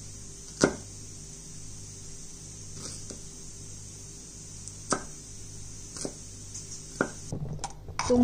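A knife chops on a wooden board with sharp knocks.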